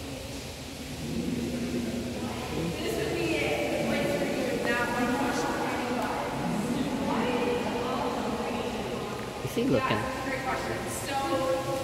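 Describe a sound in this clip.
Several men talk nearby in a large echoing hall.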